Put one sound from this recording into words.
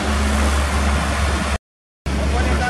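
A small digger's engine runs with a low, steady rumble.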